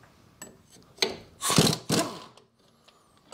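An impact wrench rattles in a short loud burst.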